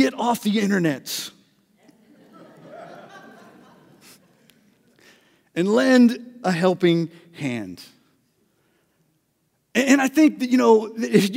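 A middle-aged man speaks with animation into a microphone, in pauses and bursts.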